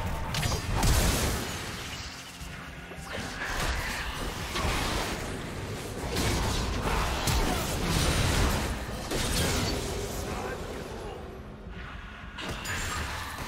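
Game spells and blows crash and burst in a busy fight.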